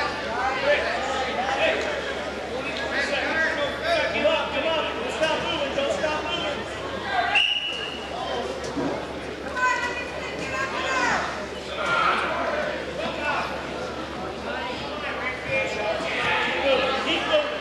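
A crowd of spectators shouts and cheers in an echoing gym.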